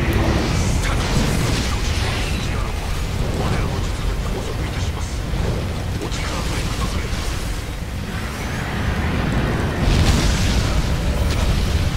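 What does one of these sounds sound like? Sword blows clash and strike loudly.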